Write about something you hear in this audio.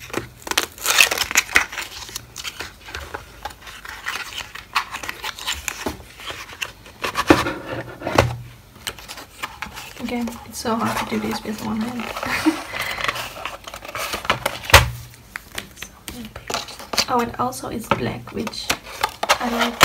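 A cardboard flap taps and clicks as it is opened and closed.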